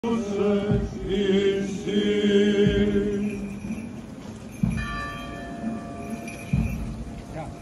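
A group of men chant together in long, held tones outdoors.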